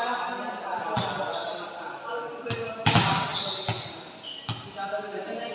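A volleyball thumps as players hit it.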